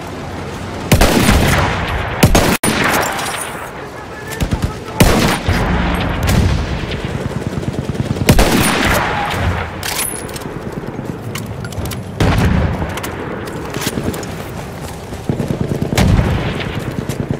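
Gunshots bang out loudly now and then, with a rumbling echo.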